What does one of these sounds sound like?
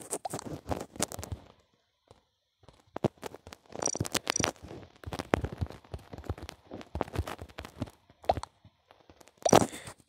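Phone keyboard keys tap and click quickly as text is typed.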